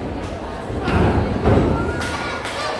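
A wrestler's body slams onto the mat with a heavy thud.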